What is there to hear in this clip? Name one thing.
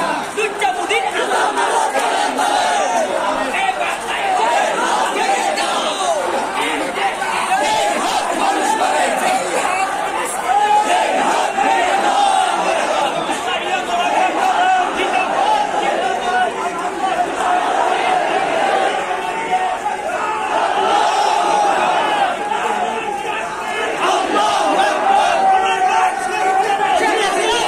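A large crowd of men chants together loudly outdoors.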